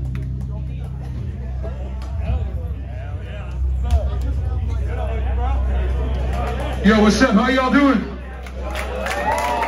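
A crowd chatters and shouts in a large echoing room.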